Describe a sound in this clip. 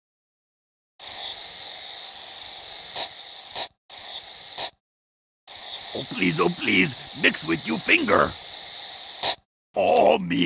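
Paint sprays from tubes with a hiss.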